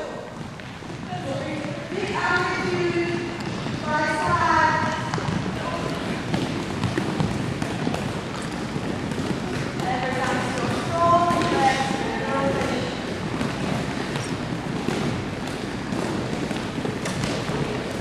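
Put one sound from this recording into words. Sneakers squeak and shuffle on a gym floor.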